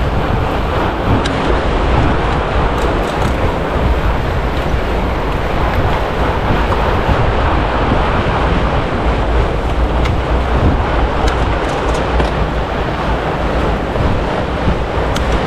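Fat bicycle tyres crunch over packed snow.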